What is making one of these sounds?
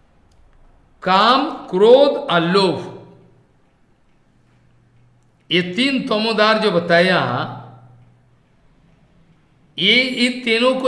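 An elderly man speaks calmly and slowly, close to a microphone.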